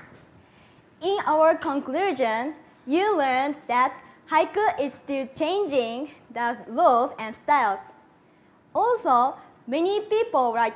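Another young woman speaks with animation into a microphone.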